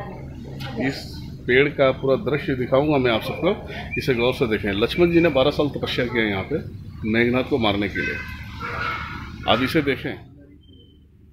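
A man speaks close up with animation.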